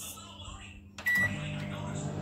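A microwave oven beeps once.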